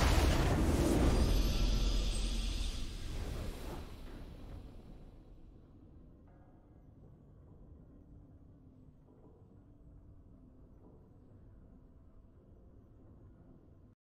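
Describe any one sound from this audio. Triumphant game music swells and then fades away.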